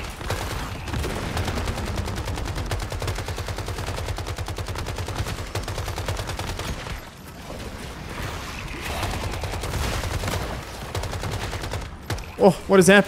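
Rapid automatic gunfire rattles steadily.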